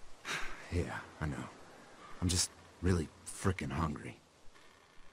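A young man speaks quietly and hesitantly.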